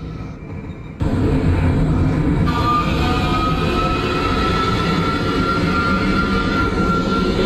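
A train motor hums and whines steadily from close by.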